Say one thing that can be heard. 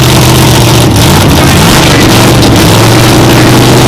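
Race engines roar loudly nearby, rising and falling in pitch.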